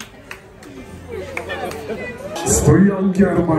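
A crowd cheers loudly in a noisy room.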